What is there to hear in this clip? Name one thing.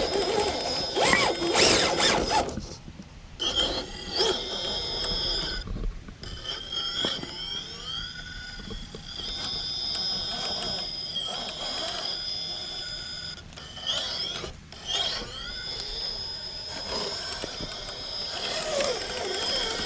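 A small electric motor whines, rising and falling as a toy truck crawls over rocks.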